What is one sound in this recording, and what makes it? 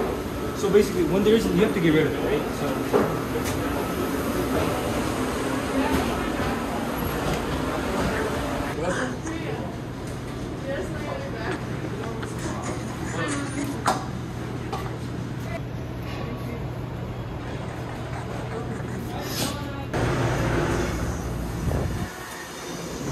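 A steady low hum runs in the background.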